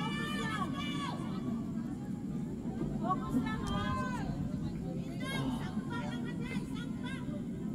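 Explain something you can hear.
Young women shout and call out across an open outdoor field.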